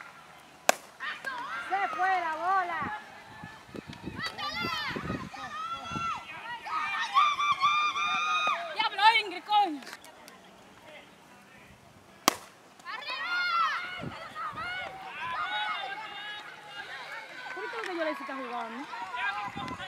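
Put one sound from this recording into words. Young women shout and cheer loudly outdoors.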